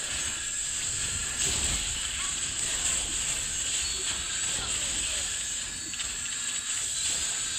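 Game spell blasts and clashing effects crackle and whoosh rapidly.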